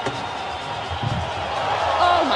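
An athlete lands with a thud in sand.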